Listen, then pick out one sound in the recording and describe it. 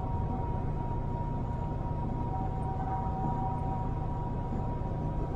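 Tyres roll steadily on the road surface.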